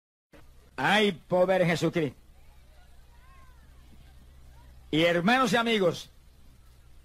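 An elderly man speaks with animation, heard through a microphone.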